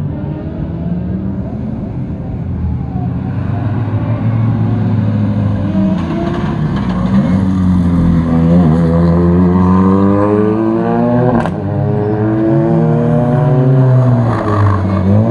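A rally car engine roars and revs loudly as it slides through a bend.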